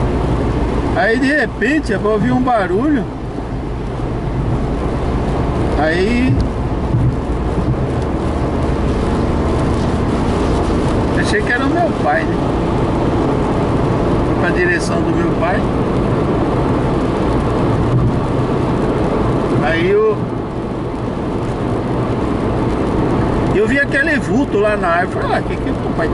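Windscreen wipers squeak across the glass.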